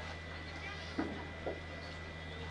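Metal boules land and clack against each other.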